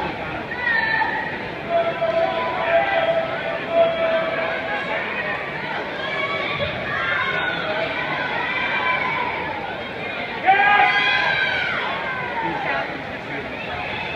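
Swimmers splash and kick through the water in an echoing indoor pool.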